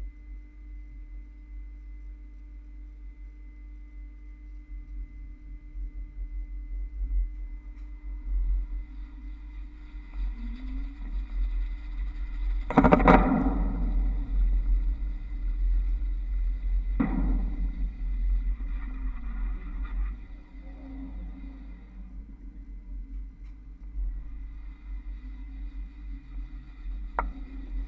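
A trolleybus electric motor hums and whines steadily.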